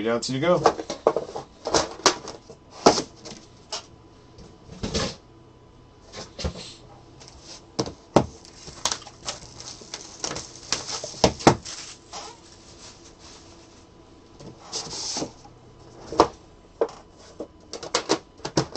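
Cardboard boxes knock and scrape against a table.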